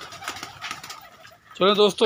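Pigeons flutter their wings close by.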